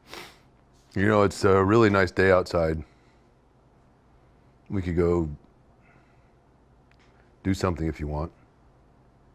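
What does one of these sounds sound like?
An elderly man speaks nearby in short bursts.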